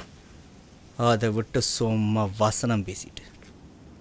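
A young man speaks nearby.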